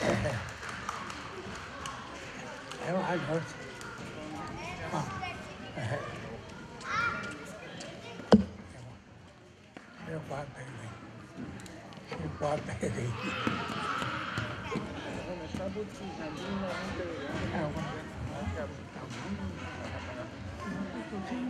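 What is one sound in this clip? Young girls chatter and giggle close by.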